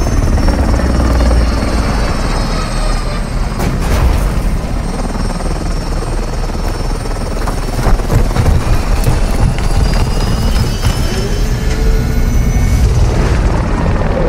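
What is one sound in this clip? A helicopter's rotor thumps and roars close by.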